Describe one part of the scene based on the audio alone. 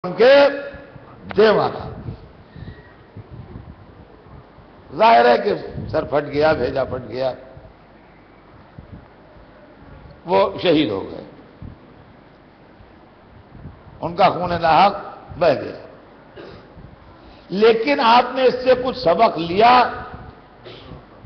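An elderly man speaks with passion into a microphone, in loud bursts with pauses between them.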